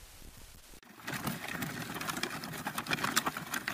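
A wooden pallet scrapes along a gravel path.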